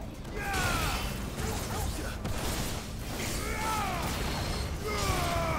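A whooshing, ringing effect sweeps downward in pitch now and then.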